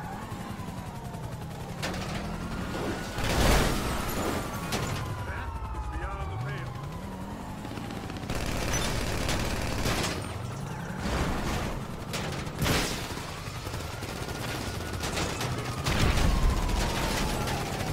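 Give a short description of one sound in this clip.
A car engine revs as the car drives.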